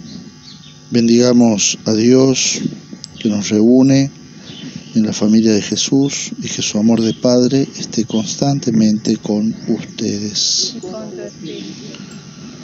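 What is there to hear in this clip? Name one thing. A man speaks slowly and solemnly, close by.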